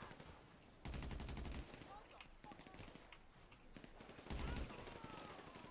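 An automatic gun fires rapid bursts.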